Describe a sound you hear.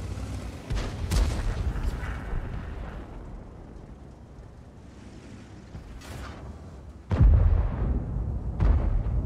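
Tank cannons fire with heavy booms.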